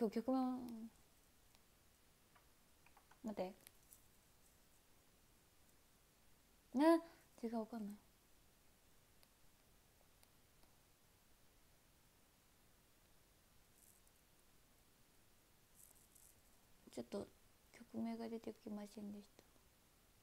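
A young woman speaks softly and close to a microphone, in short bursts with pauses.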